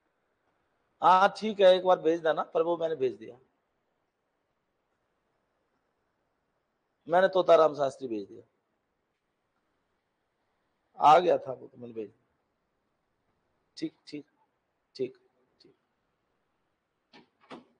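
A man lectures in short bursts with pauses, heard close through a microphone.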